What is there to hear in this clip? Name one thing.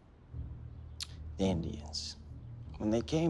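A second man answers in a quiet, tense voice.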